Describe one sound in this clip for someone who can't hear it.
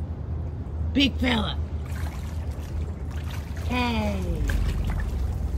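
An American alligator gives short, falling, groaning calls.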